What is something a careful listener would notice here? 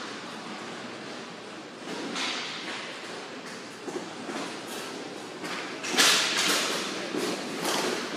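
Hockey sticks clack against a ball and the floor.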